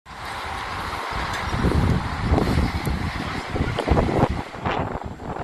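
Strong wind gusts and roars into the microphone outdoors.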